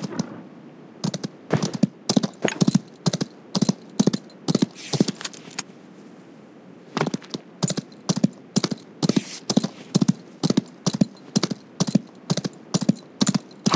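A horse gallops with steady, rhythmic hoofbeats.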